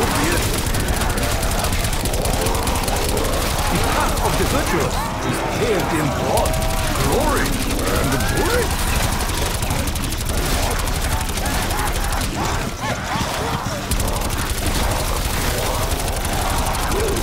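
Rapid gunfire rattles on and on.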